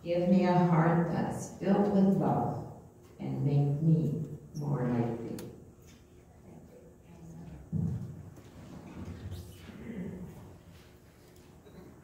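An older woman speaks slowly through a microphone in an echoing hall.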